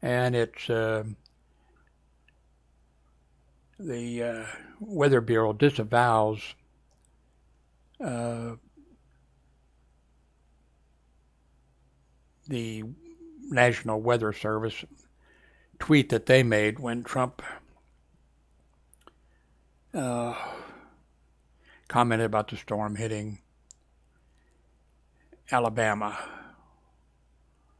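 A middle-aged man speaks calmly into a close headset microphone, in short bursts with pauses.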